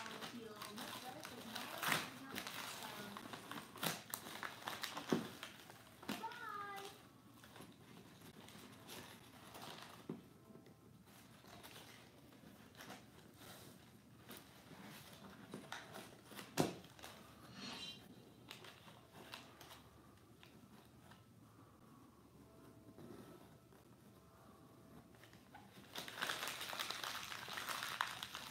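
Pieces of cardboard rustle and scrape as they are handled.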